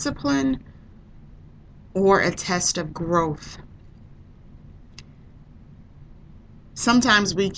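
A woman speaks calmly into a microphone, in short bursts with pauses.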